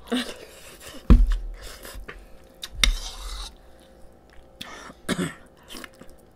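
Cutlery clinks against a bowl.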